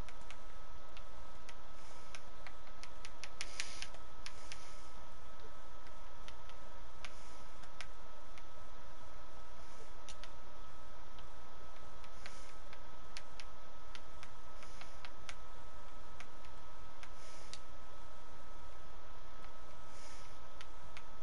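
Soft game menu clicks sound as items are selected.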